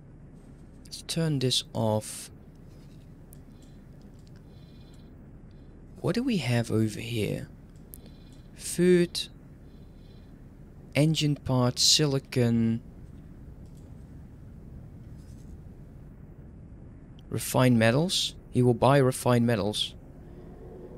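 A young man talks calmly in short bursts, close to a microphone.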